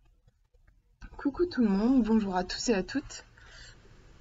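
A young woman speaks calmly and close, heard through a laptop microphone.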